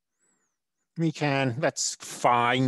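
A man speaks calmly into a headset microphone.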